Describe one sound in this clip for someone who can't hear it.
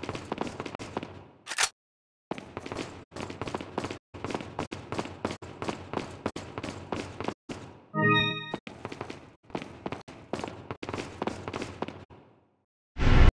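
Footsteps tap steadily on a hard stone floor in an echoing hall.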